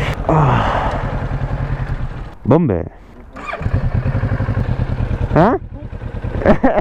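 A motorcycle engine idles close by with a rapid, throbbing rumble.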